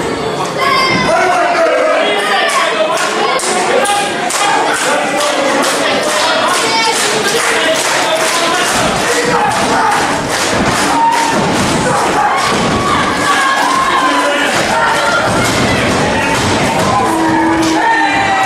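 An audience claps in a steady rhythm.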